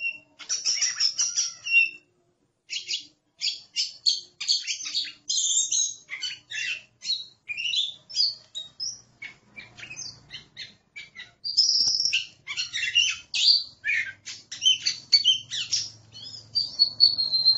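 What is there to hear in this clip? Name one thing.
A songbird sings a rapid, varied song of high whistles and chirps, close by.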